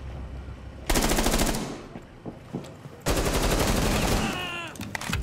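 A rifle fires rapid bursts of shots close by.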